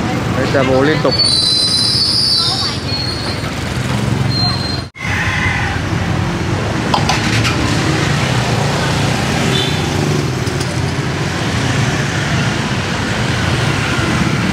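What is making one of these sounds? Adult voices chatter nearby outdoors.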